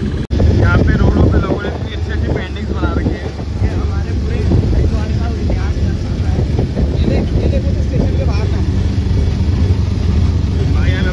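Passengers chatter nearby in a crowded vehicle.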